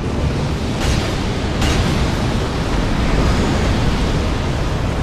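Flames roar and crackle with a deep, steady rumble.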